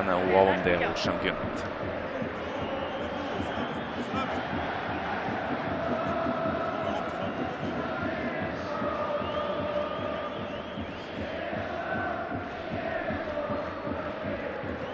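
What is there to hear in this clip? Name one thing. A large crowd chants and roars steadily in an open stadium.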